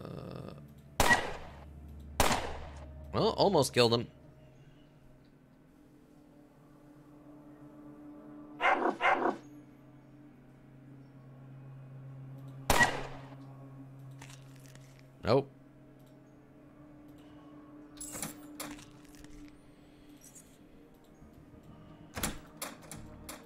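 Gunshots crack out in short, sharp bursts.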